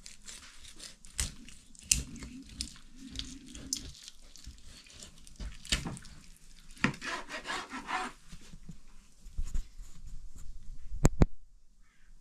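A knife taps on a plastic cutting board.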